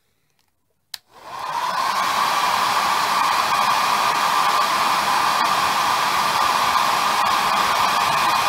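A small electric fan starts up and whirs steadily.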